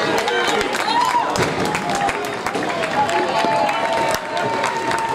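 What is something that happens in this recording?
Young men shout and cheer outdoors across a ballpark.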